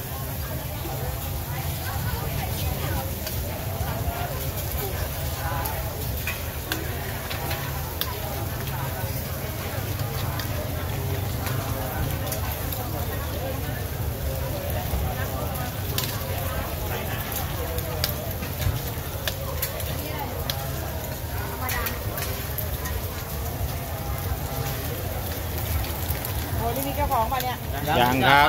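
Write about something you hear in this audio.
Batter sizzles on a hot griddle.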